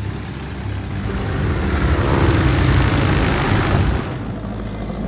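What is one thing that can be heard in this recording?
A burst of rushing noise swells and cuts off as planes dive.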